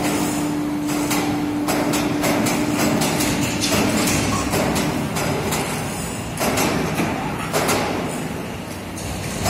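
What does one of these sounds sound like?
Metal clanks and rattles repeatedly.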